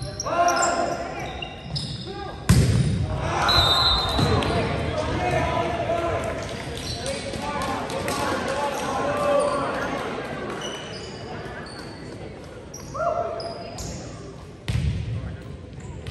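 Young players shout and call out to each other in an echoing hall.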